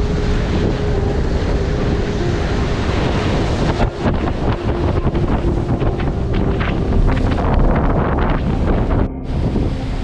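Strong wind roars outdoors.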